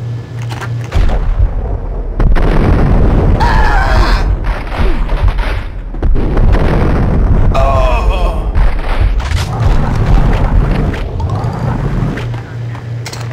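Shotgun blasts boom repeatedly, echoing down a hallway.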